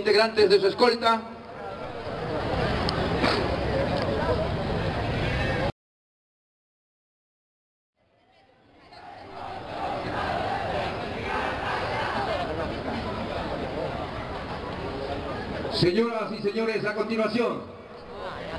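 A man speaks loudly over a loudspeaker outdoors.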